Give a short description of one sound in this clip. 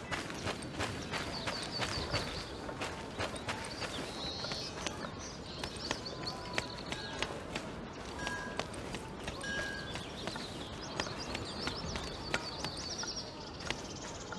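Footsteps patter quickly on stone as a character runs.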